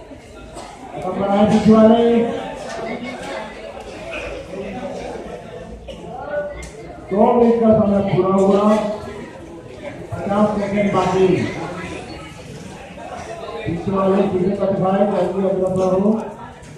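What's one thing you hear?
A man calls out loudly nearby, outdoors in open air.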